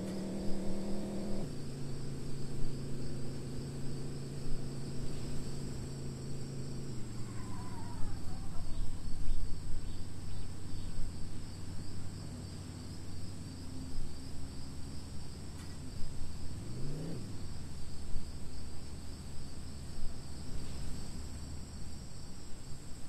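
A bus engine drones steadily, shifting pitch as it speeds up.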